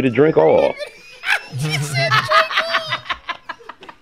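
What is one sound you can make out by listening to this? Several women laugh loudly together.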